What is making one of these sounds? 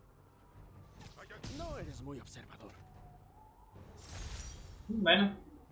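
Video game fight sounds whoosh and thud.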